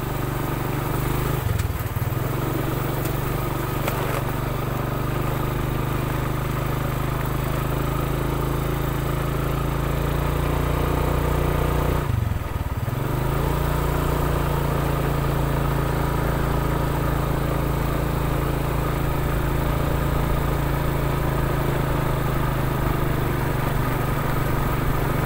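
A motorcycle engine drones steadily while riding, briefly dropping as gears change.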